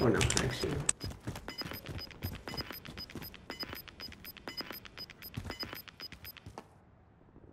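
An electronic sensor beeps steadily in quick, even pulses.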